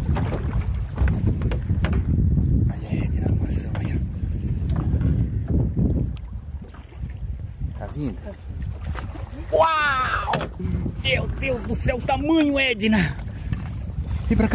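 Waves lap and splash against a small boat's hull.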